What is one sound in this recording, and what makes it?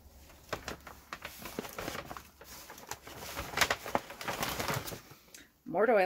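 Fabric rustles and brushes against a microphone.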